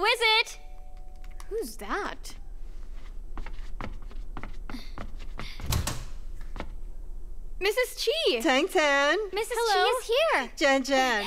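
A young woman speaks brightly and loudly, close by.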